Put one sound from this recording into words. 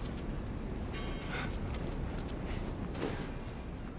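Debris crunches underfoot.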